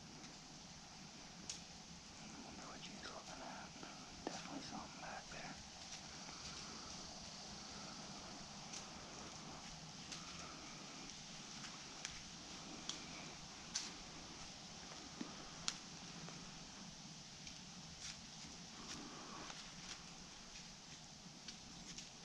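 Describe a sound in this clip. A deer's footsteps rustle and crunch softly in dry leaves nearby.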